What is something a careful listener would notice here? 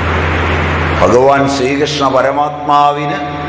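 A middle-aged man speaks close by.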